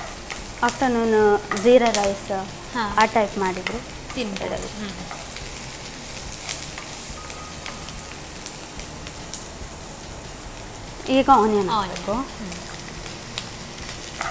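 A metal spatula scrapes in a frying pan.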